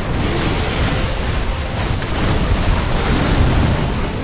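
Water splashes as a fighter moves through it.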